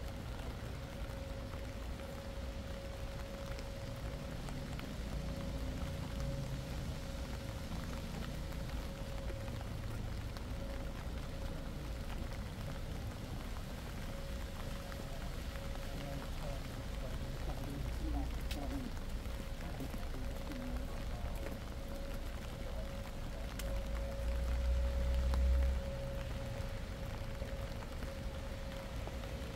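Light rain patters steadily on wet pavement outdoors.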